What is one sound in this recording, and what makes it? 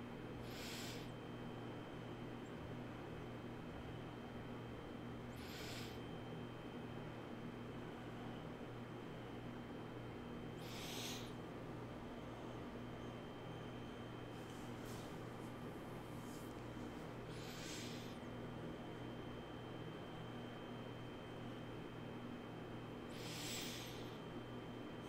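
A man breathes slowly and deeply close to a microphone.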